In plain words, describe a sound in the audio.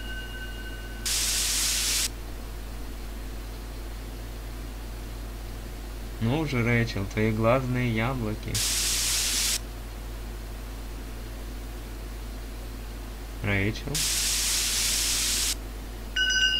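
Loud static hisses in short bursts.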